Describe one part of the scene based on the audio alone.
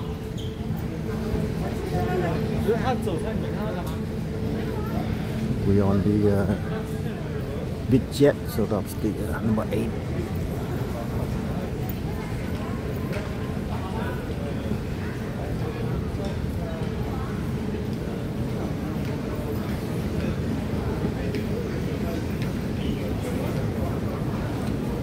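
Footsteps walk on a hard floor in a large echoing hall.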